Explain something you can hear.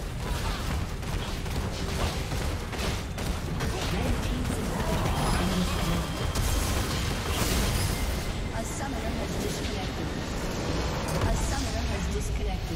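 Game spell blasts and hits crackle and thump in a busy battle.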